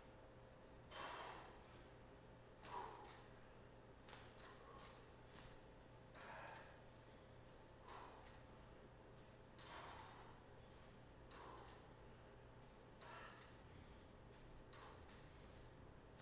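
A man exhales sharply in a steady rhythm with each exercise swing.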